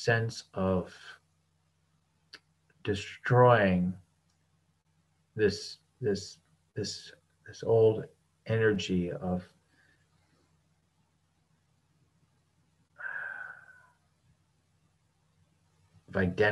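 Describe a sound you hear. A middle-aged man speaks calmly in pauses over an online call.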